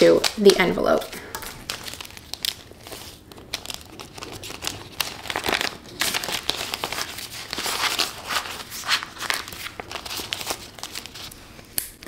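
Plastic sleeves crinkle and rustle in hands.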